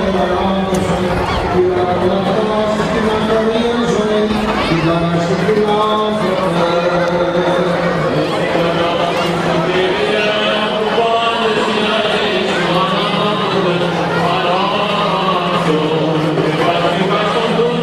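A low steady drone of male voices holds beneath the chant.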